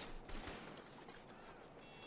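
Footsteps run across hard pavement.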